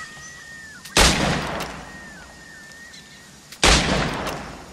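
Pistol shots bang sharply, one after another.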